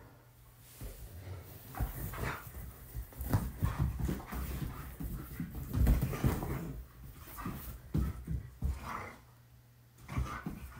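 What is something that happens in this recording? Dogs scuffle and thump on a leather couch.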